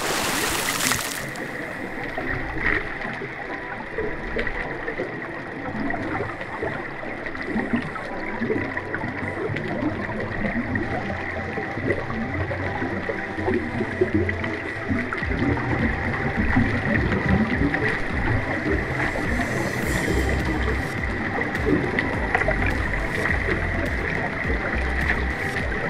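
A muffled underwater crackling and hiss goes on steadily.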